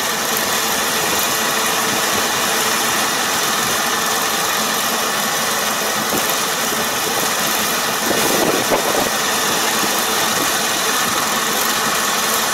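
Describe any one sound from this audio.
A combine harvester engine drones steadily nearby.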